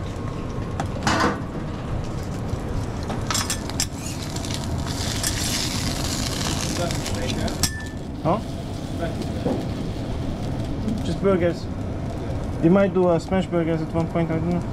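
Eggs sizzle softly on a griddle.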